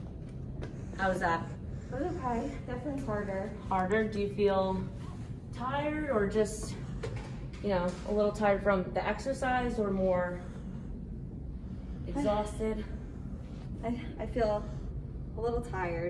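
A young woman talks calmly nearby.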